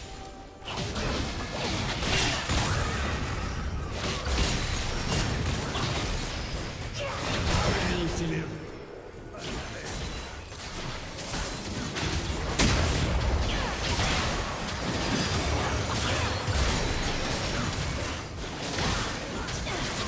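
Spell effects crackle and blast during a fight.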